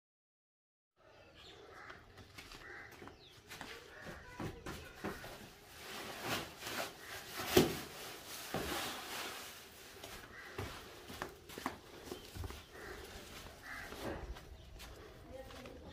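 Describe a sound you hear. Footsteps shuffle on dirt and stone.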